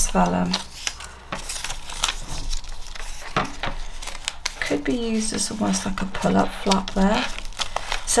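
Paper rustles and scrapes as it is handled.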